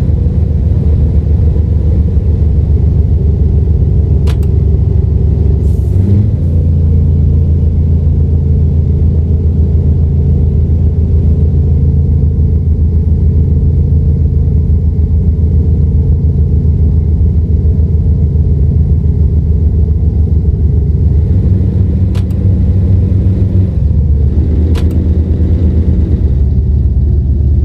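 A truck's diesel engine rumbles steadily, shifting its pitch with the gears.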